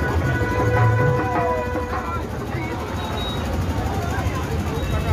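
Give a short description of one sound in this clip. A truck engine rumbles slowly past.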